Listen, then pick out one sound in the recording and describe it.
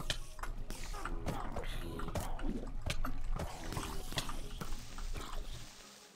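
A pickaxe strikes creatures with quick dull blows.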